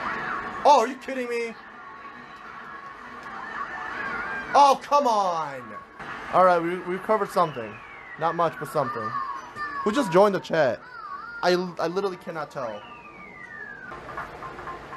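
Video game sound effects swoosh and chime from a television.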